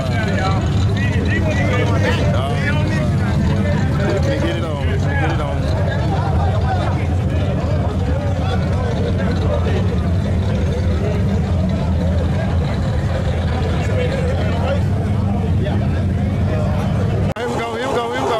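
A race car engine idles with a deep, steady rumble close by.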